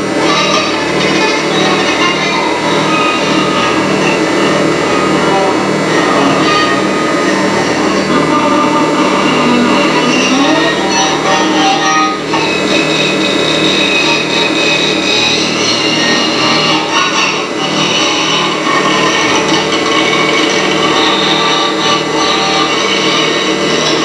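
Dense electronic tones and noise pulse through loudspeakers.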